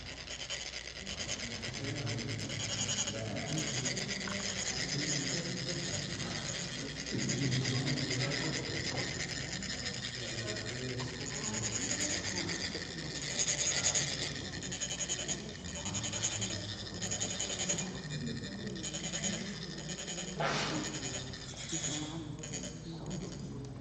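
Metal funnels rasp steadily as sand trickles out.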